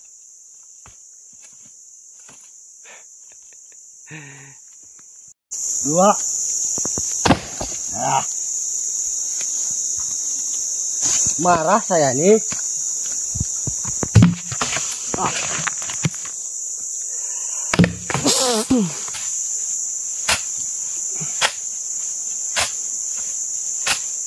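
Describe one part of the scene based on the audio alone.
A machete chops into wood with sharp knocks.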